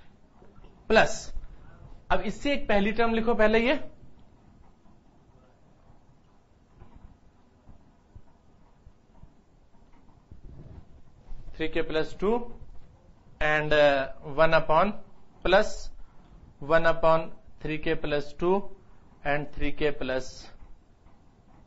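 A middle-aged man speaks calmly, as if teaching, close by.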